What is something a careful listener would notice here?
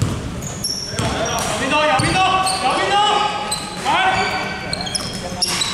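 Young men call out to each other across the court.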